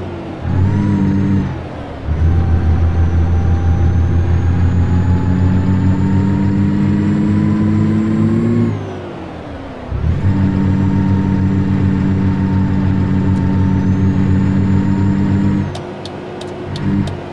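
A truck engine drones loudly and steadily, dropping away briefly between gear changes.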